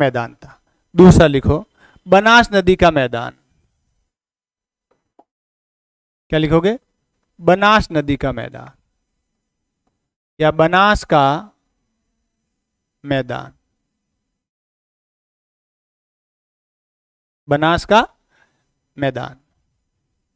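A middle-aged man speaks calmly into a clip-on microphone, in short bursts with pauses.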